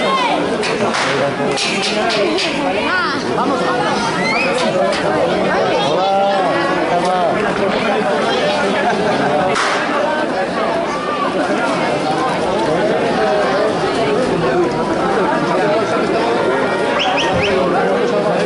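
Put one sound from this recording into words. A crowd of men and women shout and chatter loudly outdoors.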